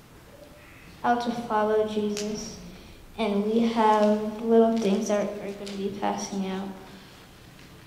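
A group of young children sings together in an echoing hall.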